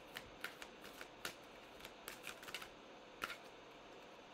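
Playing cards riffle and tap softly as they are shuffled.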